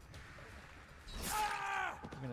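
A blade swings and strikes with a sharp slash.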